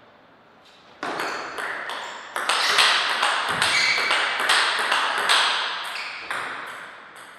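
Paddles strike a table tennis ball with sharp clicks.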